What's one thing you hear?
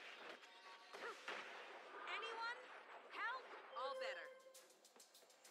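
Spell effects from a fantasy video game fight whoosh and chime in bursts.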